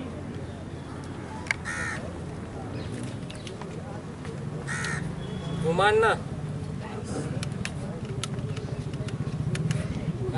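An elderly man speaks loudly to a crowd outdoors.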